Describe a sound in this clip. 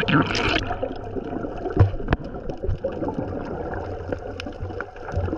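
Water sloshes and rumbles, muffled as if heard underwater.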